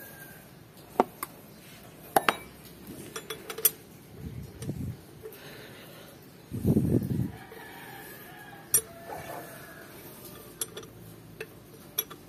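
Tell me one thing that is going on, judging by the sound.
Metal tools click and clatter against engine parts.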